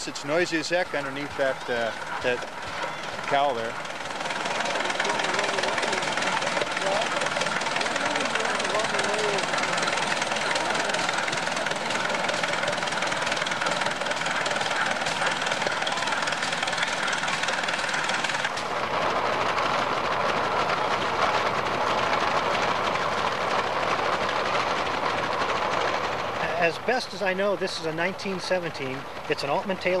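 An old tractor engine runs with a steady chugging rumble.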